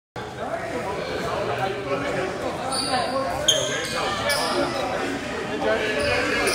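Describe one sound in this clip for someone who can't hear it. A crowd of players and spectators talks and calls out in an echoing gym.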